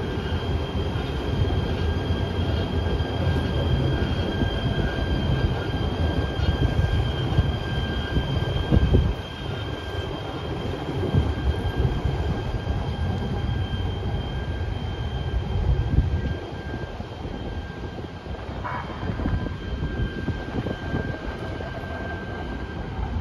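Tram wheels squeal steadily on a curve of the track.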